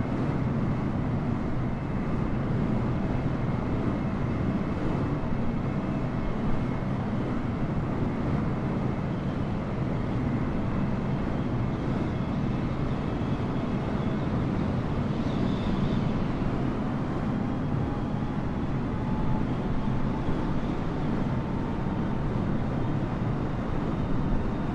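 Jet engines roar steadily as an airliner flies low overhead.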